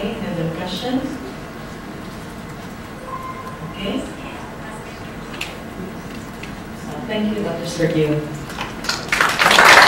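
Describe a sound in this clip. An elderly man speaks calmly through a microphone in a large echoing hall.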